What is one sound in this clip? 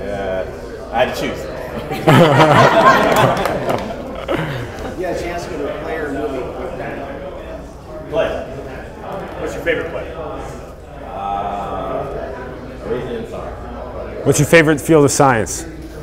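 Adults talk and laugh together in a group, with several voices overlapping.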